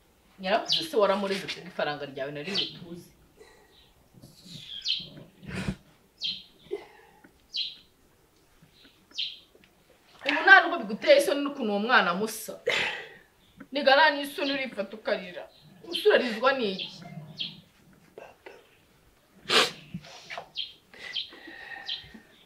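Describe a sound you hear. A young boy sobs and sniffles.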